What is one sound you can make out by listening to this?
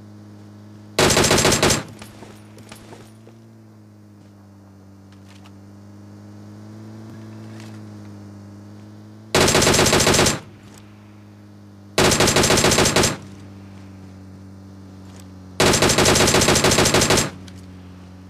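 Rapid gunfire rattles out in short, loud bursts.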